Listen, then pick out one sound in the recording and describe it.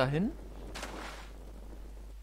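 A magical burst whooshes and crackles.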